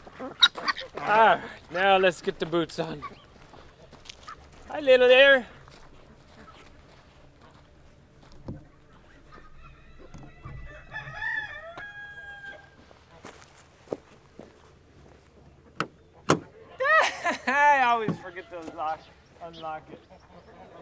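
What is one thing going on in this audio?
A chicken squawks and crows loudly nearby.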